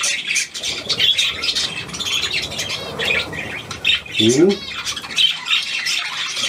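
Many budgies chirp and chatter nearby.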